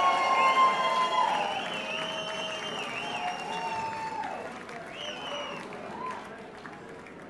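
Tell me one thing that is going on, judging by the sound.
A crowd cheers and whistles in an echoing hall.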